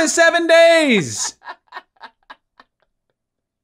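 A man speaks with animation close to a microphone, drawing out a word.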